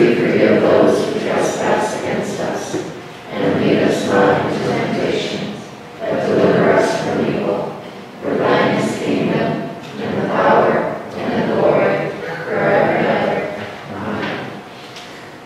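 A man speaks steadily through a microphone in a large echoing room.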